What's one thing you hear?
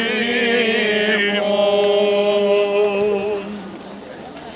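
Men chant together in a loud, melodic chorus.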